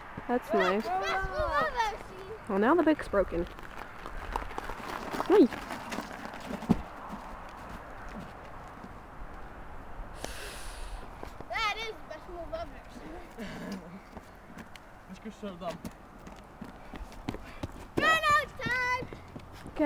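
Young boys shout and call out excitedly outdoors.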